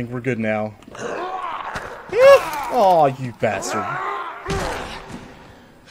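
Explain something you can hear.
A zombie groans and snarls up close.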